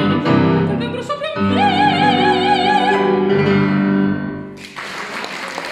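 A piano plays chords beneath a singing voice.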